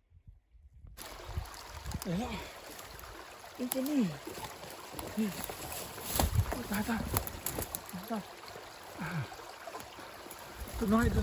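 Water rushes and gurgles close by.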